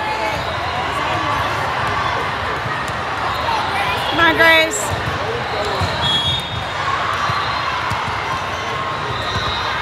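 Young girls call out to each other on the court.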